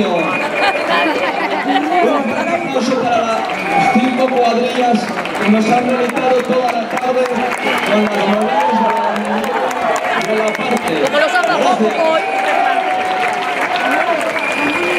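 A large crowd cheers and shouts outdoors.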